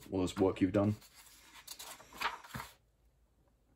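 A paper page is turned and rustles.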